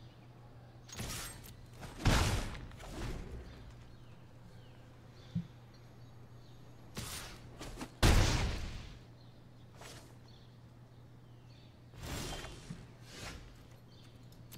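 Game sound effects whoosh and thud in short bursts.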